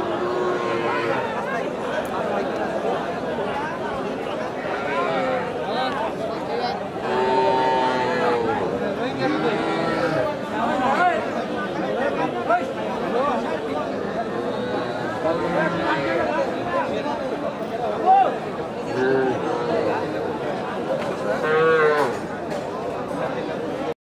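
A crowd of men chatter loudly all around, close by.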